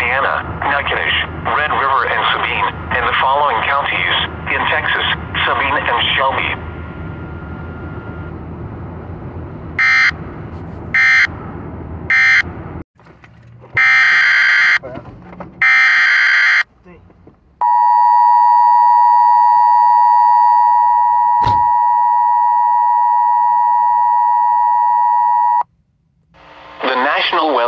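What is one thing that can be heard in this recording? A radio broadcast plays through a small phone speaker.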